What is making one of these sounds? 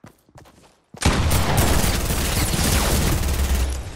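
A gun fires a long, loud burst.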